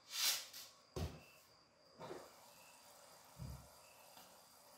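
A metal utensil clinks against a pan.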